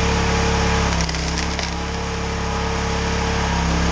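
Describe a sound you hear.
Wood cracks and splits apart under a log splitter.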